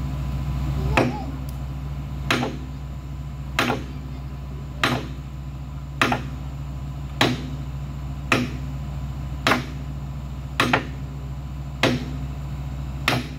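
A tool strikes wood in slow, regular blows.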